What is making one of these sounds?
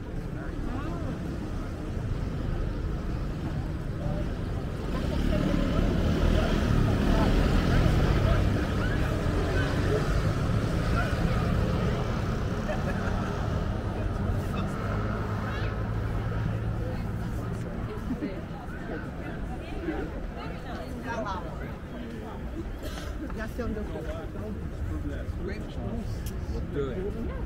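Distant city traffic rumbles steadily outdoors.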